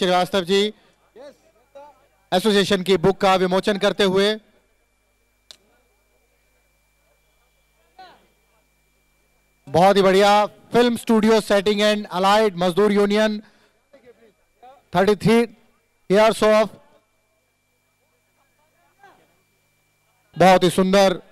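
A man speaks loudly over a loudspeaker in bursts, outdoors.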